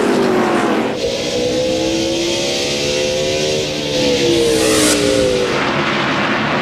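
A race car engine drones steadily up close.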